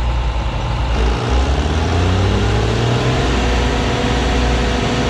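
A diesel tractor engine roars to life and revs up close by.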